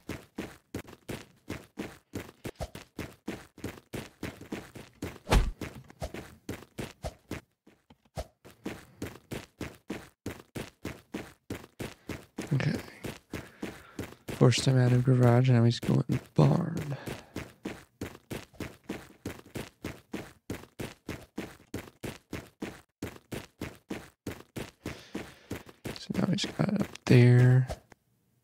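Quick footsteps thud steadily on a hard floor.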